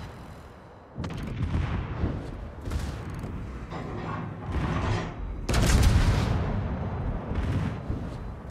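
Shells explode with deep rumbling blasts.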